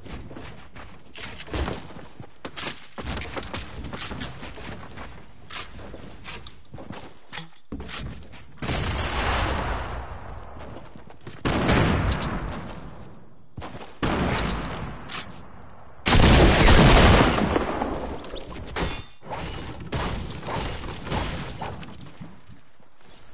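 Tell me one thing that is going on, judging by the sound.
Wooden walls and ramps snap into place with quick clattering thuds in a video game.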